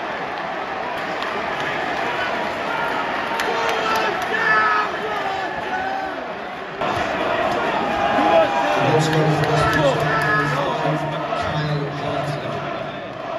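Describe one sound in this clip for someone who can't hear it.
Fans sing together in a big crowd.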